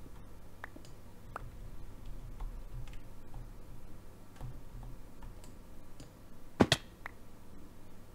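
Stone blocks are set down with short, dull knocks.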